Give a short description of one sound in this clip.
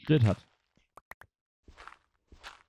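A pickaxe chips and breaks stone blocks.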